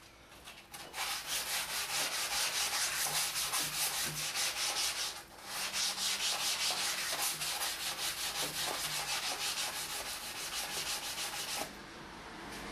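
A hand rubs briskly back and forth over wood with a rapid scratchy rhythm.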